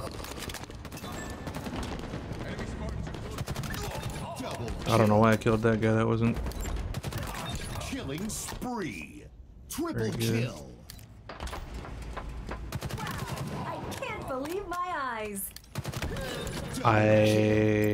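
Rapid gunfire rattles in sharp bursts.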